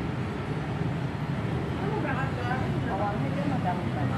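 Women chat nearby.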